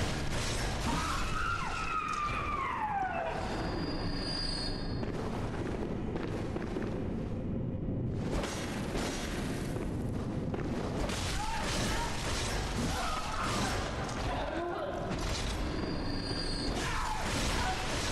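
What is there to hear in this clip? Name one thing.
Blades slash and strike with wet thuds.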